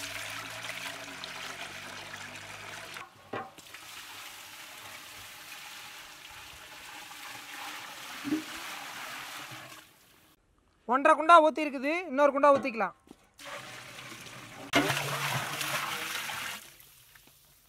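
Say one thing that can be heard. Water pours and splashes into a metal pot.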